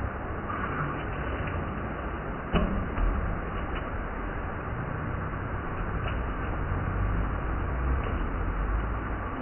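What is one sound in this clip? A waterfall splashes onto rocks into a pool, outdoors.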